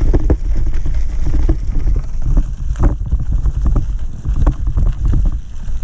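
A bicycle frame and chain clatter over bumps.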